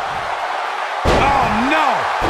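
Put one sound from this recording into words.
A heavy body slams onto a wrestling mat with a thud.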